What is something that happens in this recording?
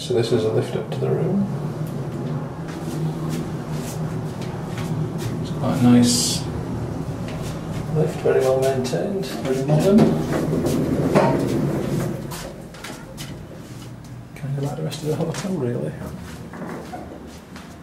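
A lift hums steadily as it rises.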